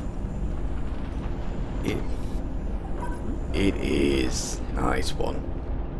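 Heavy machinery rumbles with a low, steady drone.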